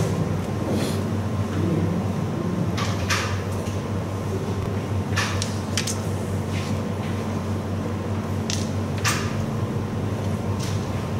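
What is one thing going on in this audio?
Carrom pieces click sharply against each other on a wooden board.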